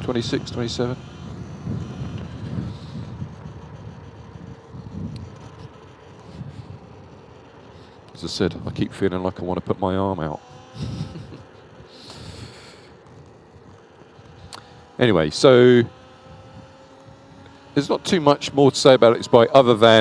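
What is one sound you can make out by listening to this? A motorbike hums along a road.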